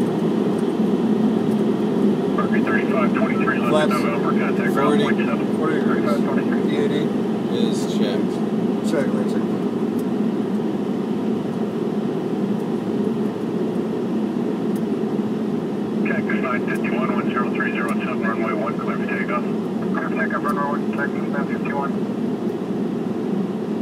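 A small plane's engine drones loudly and steadily from inside the cabin.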